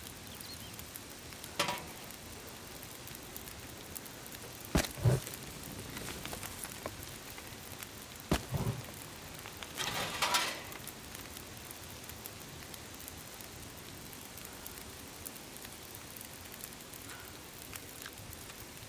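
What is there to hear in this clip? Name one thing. A fire crackles and hisses.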